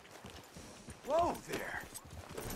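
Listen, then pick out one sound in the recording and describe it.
A horse snorts and whinnies.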